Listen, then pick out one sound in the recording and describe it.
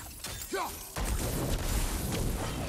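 A fiery blast roars and crackles.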